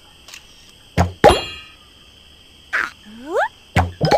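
Playful game sound effects pop and whoosh as bubbles are shot.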